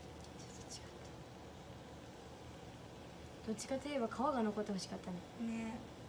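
Dumplings sizzle softly in a frying pan.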